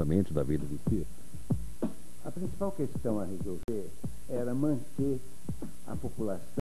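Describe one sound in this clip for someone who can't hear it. A middle-aged man speaks calmly into a handheld microphone, close by.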